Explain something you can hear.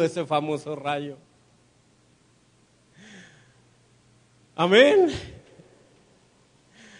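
A man preaches with animation through a microphone in an echoing room.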